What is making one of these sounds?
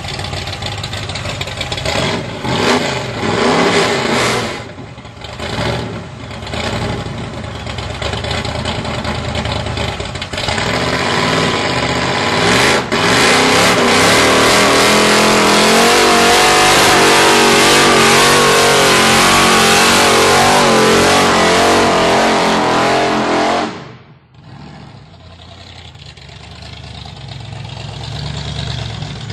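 A big car engine rumbles loudly and revs hard.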